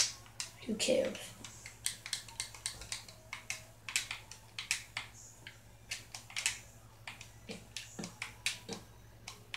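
Short clicking thuds from a video game come again and again.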